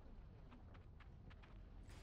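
A fiery blast whooshes past.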